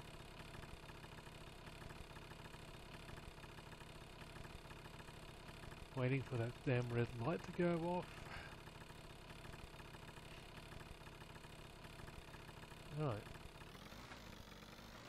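A small scooter engine idles steadily.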